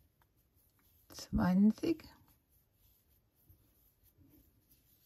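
A crochet hook softly rustles as it pulls yarn through loops.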